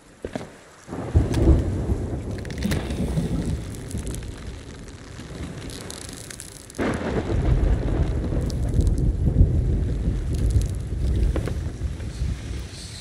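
Sea waves surge and splash loudly nearby.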